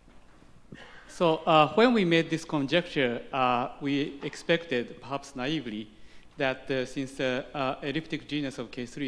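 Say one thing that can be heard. A man asks a question from the audience, heard at a distance in an echoing hall.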